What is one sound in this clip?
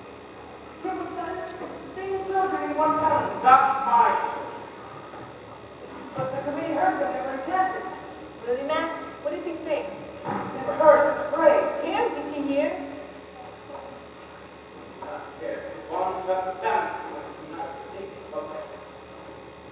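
Men speak loudly on a stage, heard from a distance in an echoing hall.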